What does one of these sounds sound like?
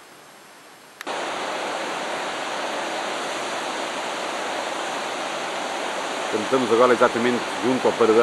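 Wind blows loudly and steadily outdoors.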